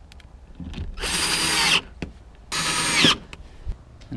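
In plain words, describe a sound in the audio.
A cordless drill whirs in two short bursts, driving screws.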